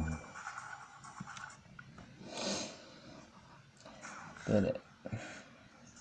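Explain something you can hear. Buttons click softly on a handheld game console.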